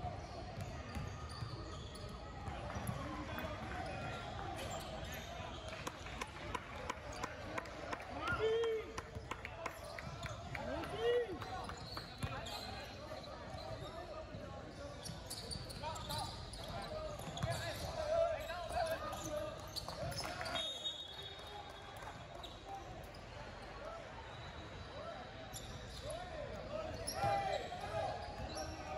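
Spectators chatter and call out in the background.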